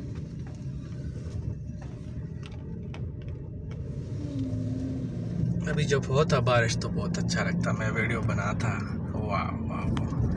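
A car rumbles steadily as it drives along a road.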